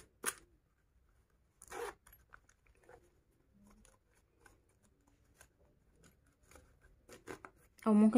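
A plastic card slides in and out of a fabric pocket.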